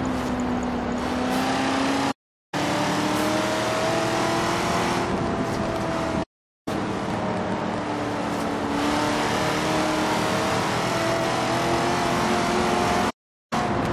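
A car engine roars steadily at high speed, its pitch rising and falling with the gears.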